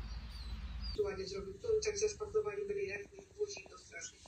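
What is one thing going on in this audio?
Rain patters on a window.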